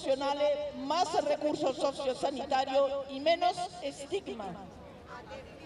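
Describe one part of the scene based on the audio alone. An elderly woman reads out loudly into a microphone, heard through a loudspeaker outdoors.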